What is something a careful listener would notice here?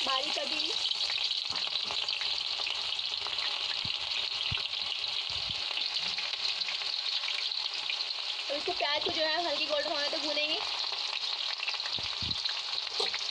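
Oil sizzles and bubbles steadily in a hot pan.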